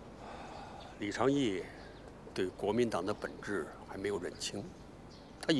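An elderly man speaks slowly, close by.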